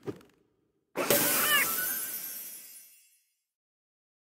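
A cheerful jingle plays as a pet is rescued.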